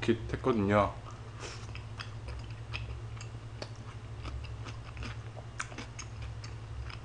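A young man chews and slurps food noisily close to a microphone.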